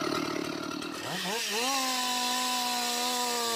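A chainsaw revs up and then whines at a steady high pitch.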